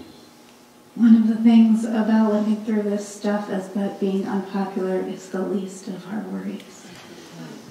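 A young woman reads aloud into a microphone, heard through a loudspeaker in a room.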